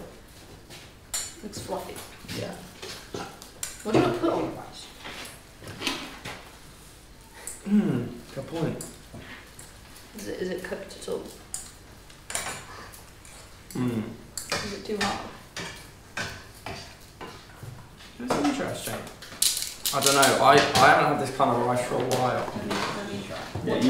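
Utensils clatter and knock on dishes.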